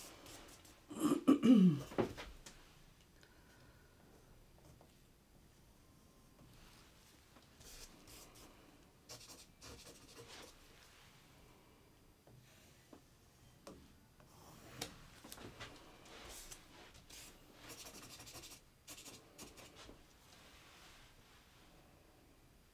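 A thin stick scrapes and taps softly across wet paint.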